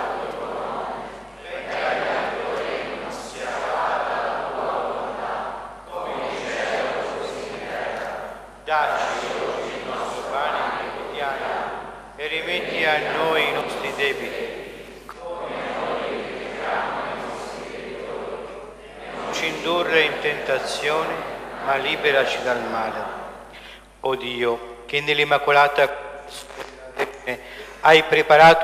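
A congregation sings a hymn together in a large echoing hall.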